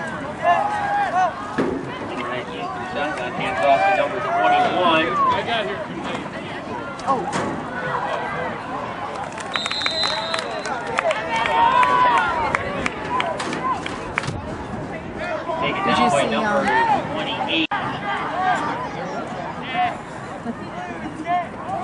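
Nearby spectators cheer and shout outdoors.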